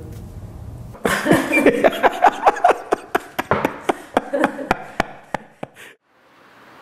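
A man laughs loudly and heartily.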